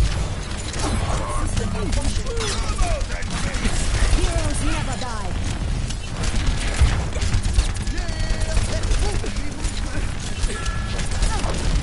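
Rapid energy gunfire crackles and zaps.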